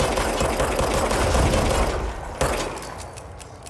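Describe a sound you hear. A heavy creature crashes and roars close by.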